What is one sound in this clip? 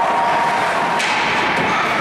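A hockey stick smacks a puck sharply.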